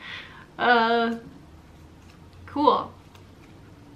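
A young woman speaks briefly and softly close by.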